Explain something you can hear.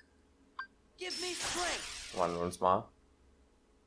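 A rushing magical whoosh swirls and fades.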